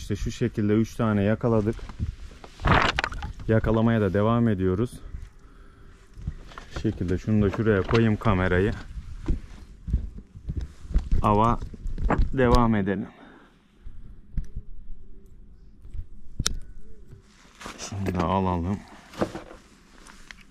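A man talks with animation close by.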